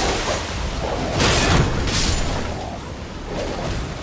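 Blades slash and strike with heavy impacts.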